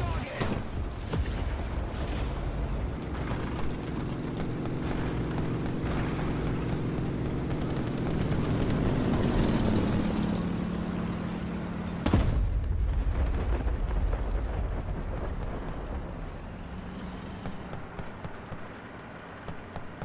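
Tank tracks clank and squeak as they roll.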